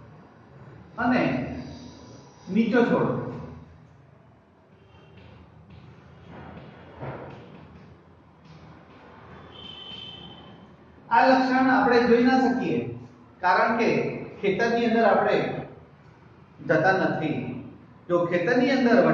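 An elderly man speaks clearly and calmly, close by, as if teaching.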